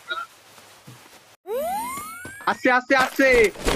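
A body falls heavily to the ground.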